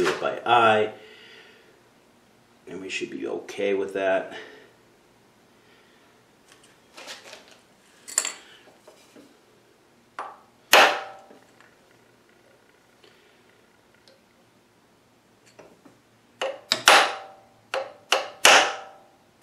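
A hex key clicks and taps against a metal part.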